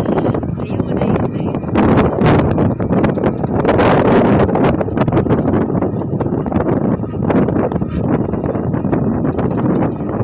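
A loose cloth flaps in the wind close by.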